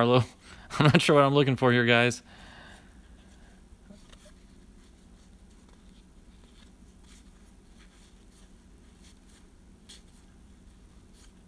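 Trading cards rustle and flick softly as they are shuffled by hand.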